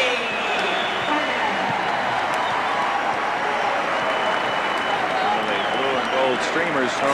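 A large crowd murmurs and cheers in an echoing arena.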